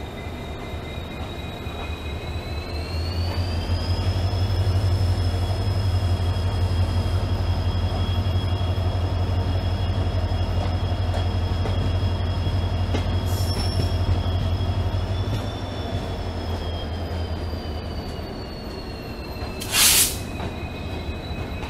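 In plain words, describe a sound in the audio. A locomotive engine whines with a steady pitch that rises and later falls.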